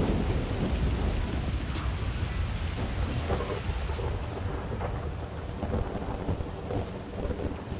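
Fire roars and crackles steadily.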